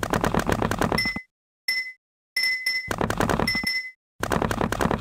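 Short electronic blips sound as blocks are placed in a game.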